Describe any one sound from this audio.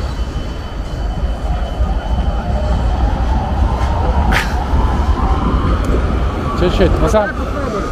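A tram passes by nearby.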